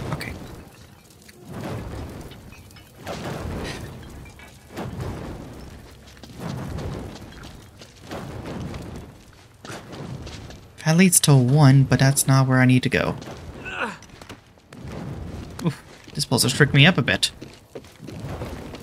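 A young man talks casually into a microphone, close up.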